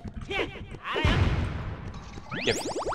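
A blast bursts with a whoosh.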